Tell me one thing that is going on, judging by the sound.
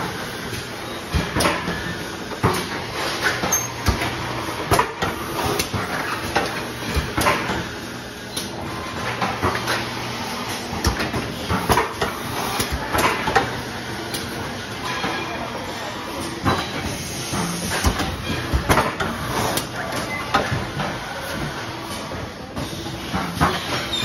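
Metal parts inside a machine knock and clack in a quick, uneven rhythm.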